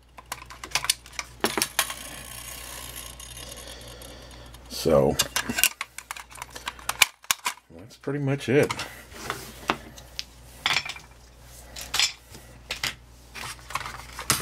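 Plastic parts of a toy car click and rattle as they are handled.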